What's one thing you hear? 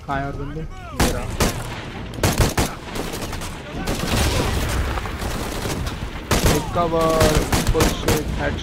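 Rifle shots crack in sharp bursts.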